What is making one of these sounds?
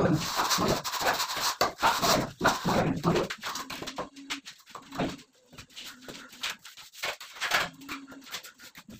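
A tool scrapes and taps against a wall.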